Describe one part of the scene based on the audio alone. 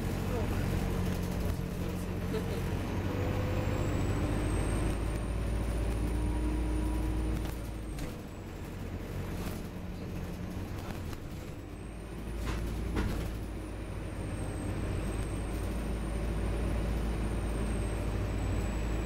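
A bus engine rumbles low and steady from inside, easing off briefly and picking up again.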